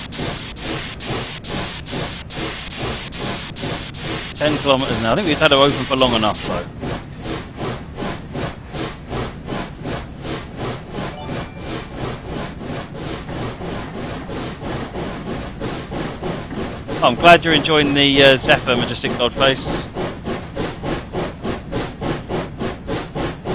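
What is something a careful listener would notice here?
A steam locomotive chuffs in a steady, quickening rhythm.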